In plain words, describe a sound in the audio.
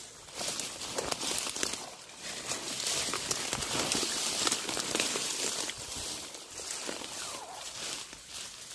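Dry grass rustles and crackles close by.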